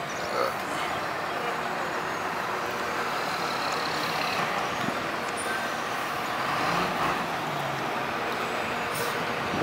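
A bus engine rumbles as the bus rolls slowly by outdoors.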